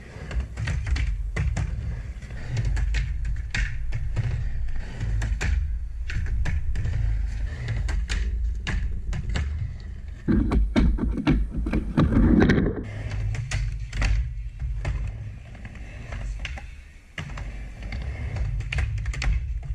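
A skateboard clacks and knocks sharply against a ramp's edge.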